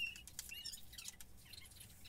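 A paper towel rustles as it wipes a part.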